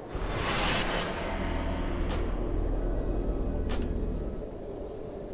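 A magical portal hums and whooshes loudly, then cuts off.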